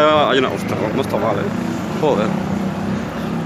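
A young man speaks close to a handheld microphone.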